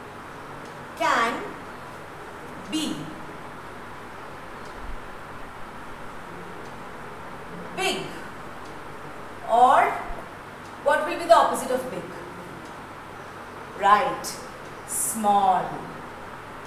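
A woman speaks in short phrases into a microphone.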